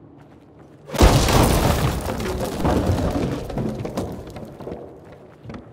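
Wooden planks crash and splinter as they break apart.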